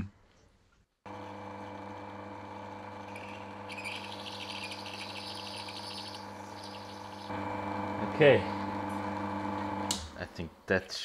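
A small lathe motor hums steadily.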